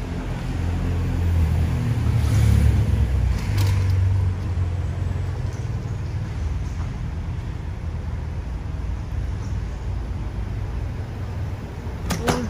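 A car drives past on a city street.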